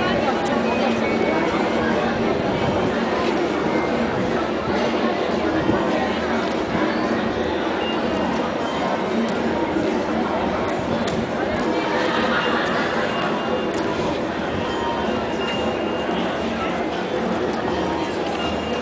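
A horse's hooves clop on paving stones.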